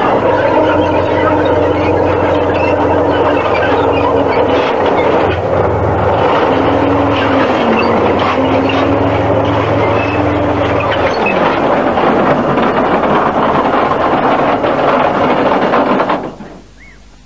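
A heavy tank engine roars close by.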